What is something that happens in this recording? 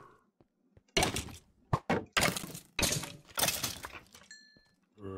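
A sword strikes a rattling skeleton several times.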